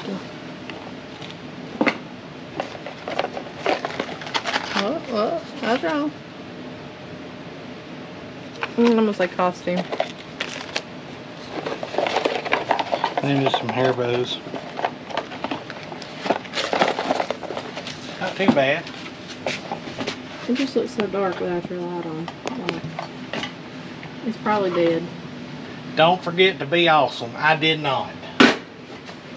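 Cardboard and small boxes rustle and tap as they are handled.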